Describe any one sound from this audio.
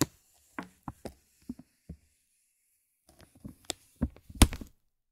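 A soft brush taps and brushes against crinkly plastic, close by.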